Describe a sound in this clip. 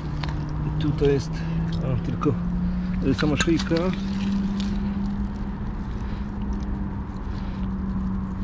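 Dry leaves and soil rustle and crunch as a hand digs through them.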